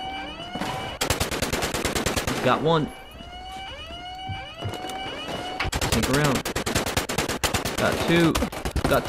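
A gun fires in rapid, rattling bursts.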